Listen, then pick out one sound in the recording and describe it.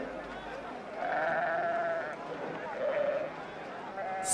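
Sheep bleat in a flock.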